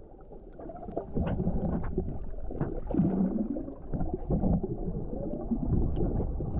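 A swimmer kicks and splashes, churning up bubbles underwater.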